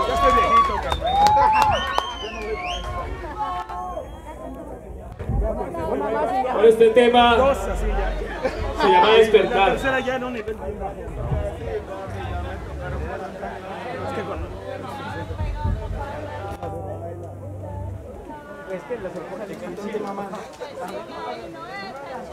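A crowd of young men and women chatters and shouts nearby.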